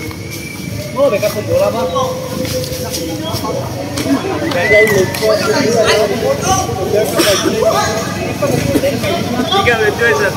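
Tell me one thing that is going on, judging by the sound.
A crowd of young people shouts and cheers outdoors.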